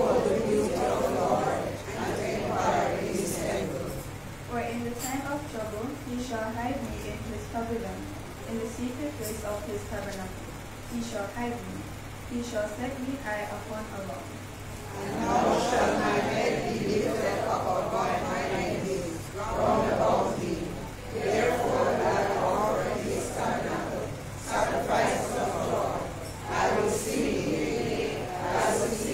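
A congregation of men and women sings together loudly.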